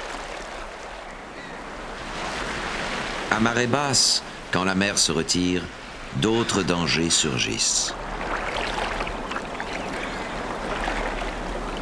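Waves wash and swirl over rocks.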